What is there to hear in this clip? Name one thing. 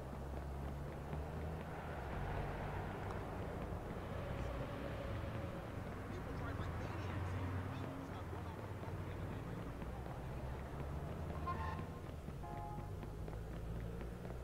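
City traffic hums steadily with car engines.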